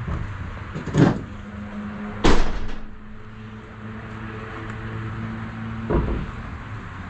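A metal ladder clanks and knocks.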